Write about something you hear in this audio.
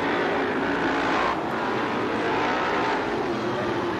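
A crowd cheers from the stands.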